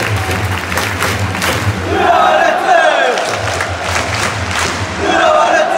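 A large stadium crowd chants and sings together, echoing under the open sky.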